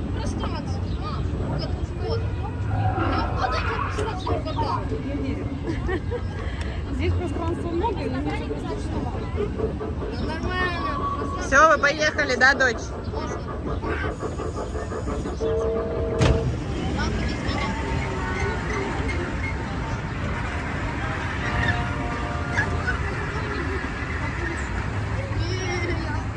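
A children's ride train rumbles along its track.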